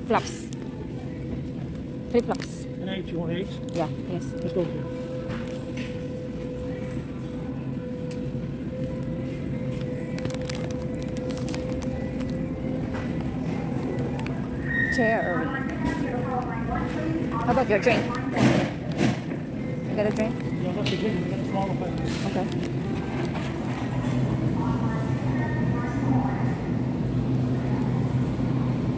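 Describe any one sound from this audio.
A shopping cart rattles as it rolls along a hard floor.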